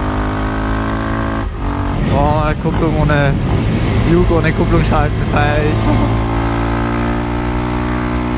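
A motorcycle engine drones steadily, revving up and down through the gears.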